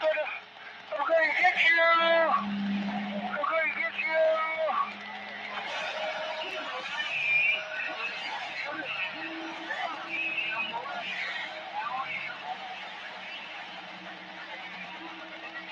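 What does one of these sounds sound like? A man talks through a crackling radio loudspeaker.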